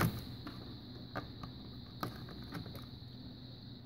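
Test probes tap and click against metal terminals.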